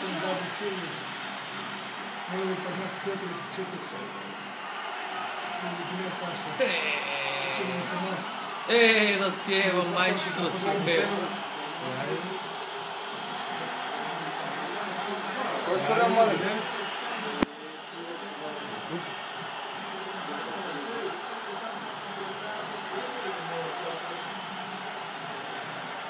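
A crowd murmurs and cheers through a television speaker.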